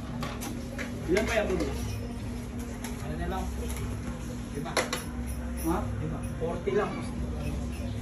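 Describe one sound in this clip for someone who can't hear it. A man and a woman talk quietly nearby.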